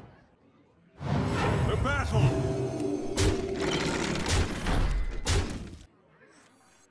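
Game sound effects crash and clang.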